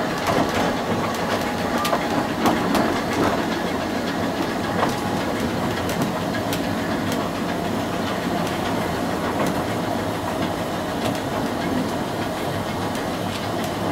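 A narrow-gauge steam locomotive rumbles along at low speed.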